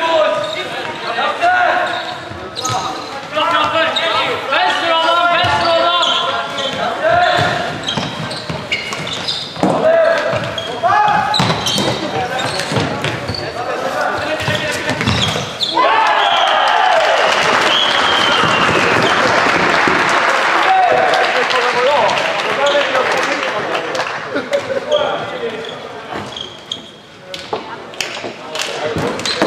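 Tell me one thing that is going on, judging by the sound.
Sticks click sharply against a plastic ball.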